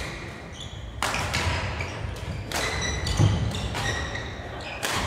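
Shoes squeak on a hall floor.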